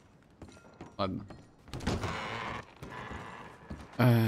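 Saloon swing doors creak and bang as they are pushed open.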